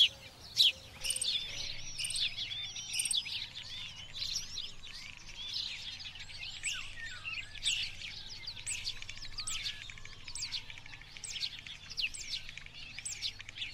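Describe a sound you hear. A jackdaw calls.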